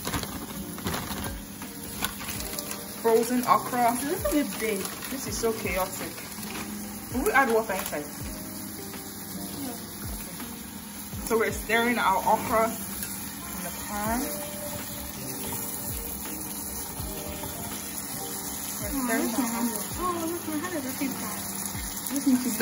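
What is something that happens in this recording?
A pot of soup simmers quietly.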